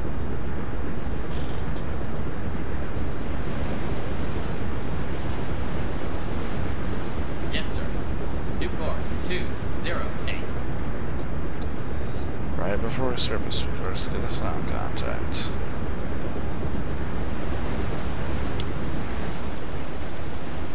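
Water rumbles and churns steadily underwater.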